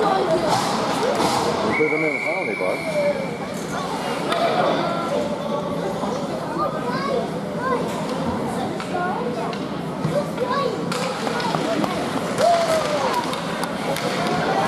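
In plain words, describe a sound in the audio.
A crowd of spectators chatters and calls out in an echoing rink.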